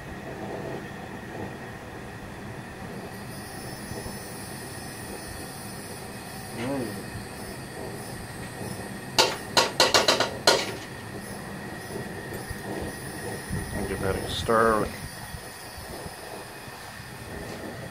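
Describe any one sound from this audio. Liquid in a pan hisses and bubbles steadily.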